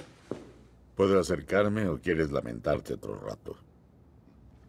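A man speaks calmly nearby in an echoing room.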